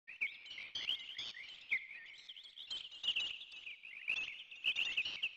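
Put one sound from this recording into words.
Footsteps tread softly on a forest floor.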